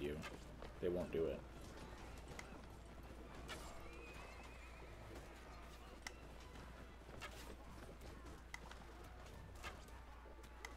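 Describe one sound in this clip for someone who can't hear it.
Horses gallop over the ground.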